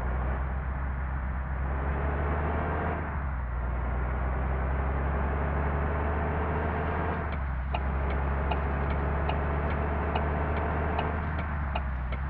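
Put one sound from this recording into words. A bus engine in a driving game accelerates through the gears.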